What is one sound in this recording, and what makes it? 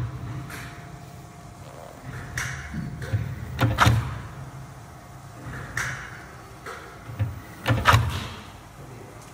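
A machine thumps and hisses in a repeating cycle.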